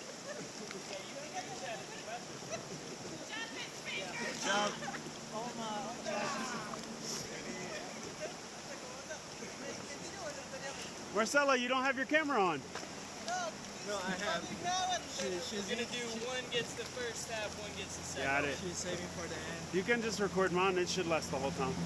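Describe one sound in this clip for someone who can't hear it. Several men and women talk and call out nearby, outdoors.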